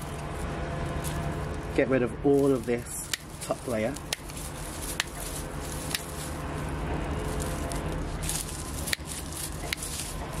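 Dry plant stalks rustle and crackle as a hand pulls them away.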